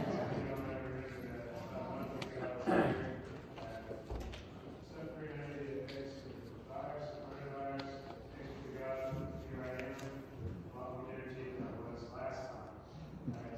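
A congregation of men and women sings together in a reverberant hall.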